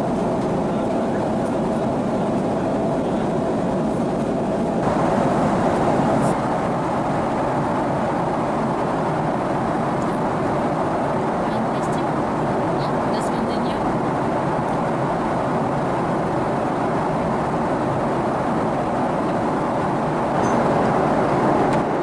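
A steady, low roar of an airliner cabin fills the air.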